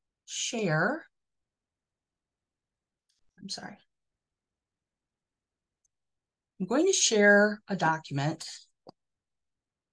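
A middle-aged woman speaks calmly through an online call microphone, in short bursts with pauses.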